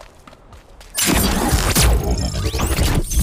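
A loud magical blast booms.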